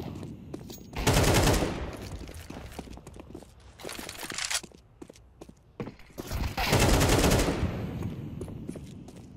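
A smoke grenade hisses as it bursts.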